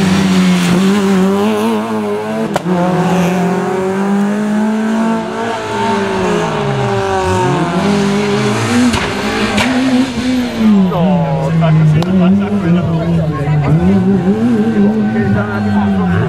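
Rally car engines roar and rev hard close by, rising and falling as the cars race past.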